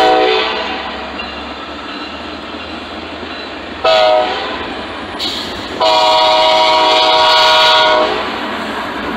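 A train horn blares loudly in several blasts.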